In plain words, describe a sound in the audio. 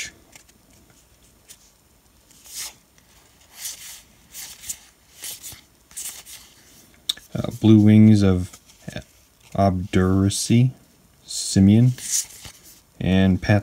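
Playing cards rustle and slide against each other as they are handled.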